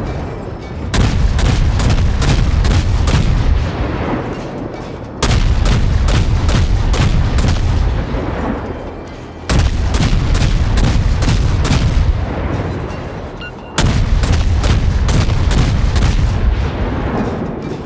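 Naval guns fire in rapid booming volleys.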